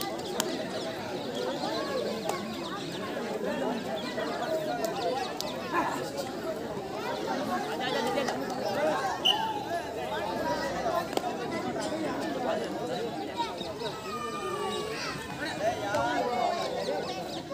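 A crowd of men and boys chatters and shouts outdoors.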